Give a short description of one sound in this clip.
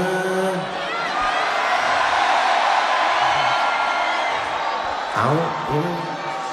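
A large crowd cheers in the distance.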